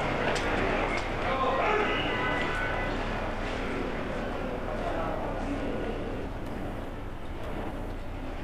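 A crowd murmurs outdoors nearby.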